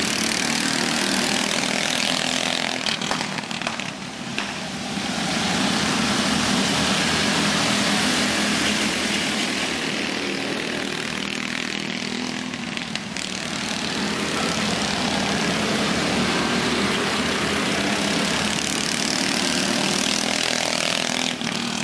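Small engines rev up as karts speed past.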